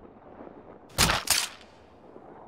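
A soldier picks up ammunition with two sharp metallic clicks.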